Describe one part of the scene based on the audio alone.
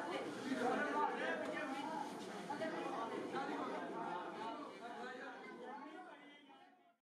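A crowd of men chants loudly together, fading out at the end.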